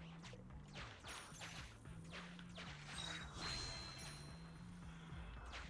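Bright chiming game sounds ring out as coins are collected.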